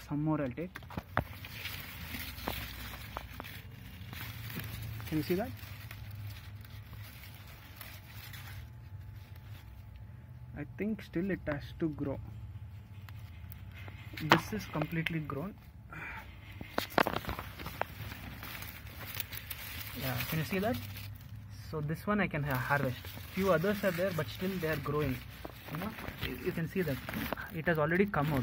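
Leaves rustle.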